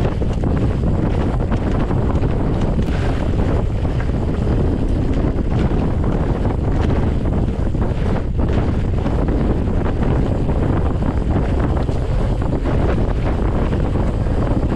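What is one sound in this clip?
Wind rumbles loudly against a moving bike.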